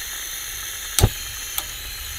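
A camping stove igniter clicks.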